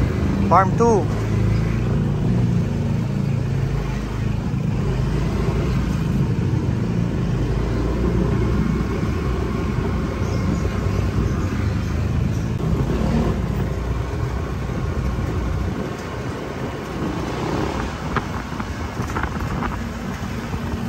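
Wind rushes past at low speed.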